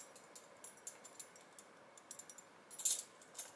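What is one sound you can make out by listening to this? Keys jingle and clink together.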